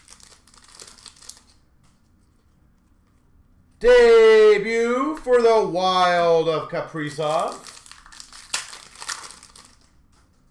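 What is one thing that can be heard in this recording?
A plastic card pack crinkles as it is torn open.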